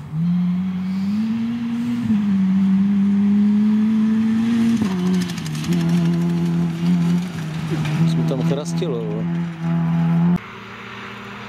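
Tyres crunch and spray loose gravel.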